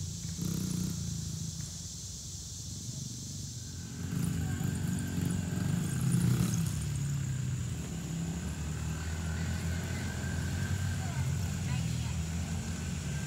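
A small dirt bike engine buzzes and revs nearby outdoors.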